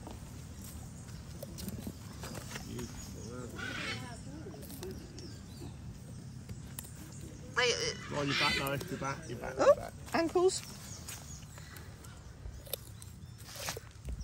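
A tortoise crunches and munches on a carrot up close.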